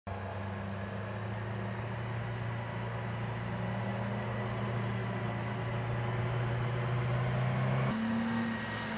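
Heavy vehicle engines drone steadily in the distance.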